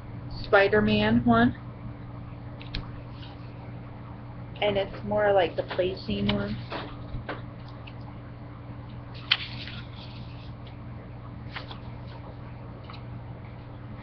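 A sticker sheet rustles and crinkles in a woman's hands.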